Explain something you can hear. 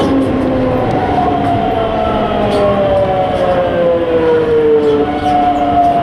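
Train brakes squeal, falling in pitch.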